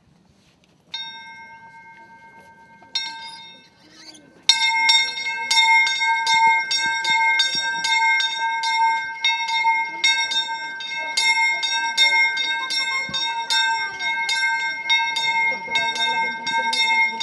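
A church bell rings with repeated clanging strikes.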